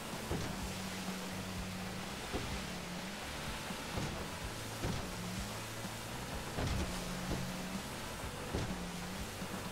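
A boat hull slaps and thuds against choppy waves.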